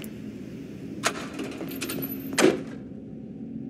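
A metal locker door bangs shut.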